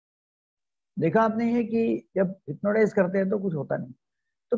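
An elderly man talks over an online call.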